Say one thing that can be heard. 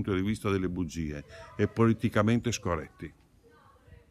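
An elderly man speaks calmly and close to a microphone.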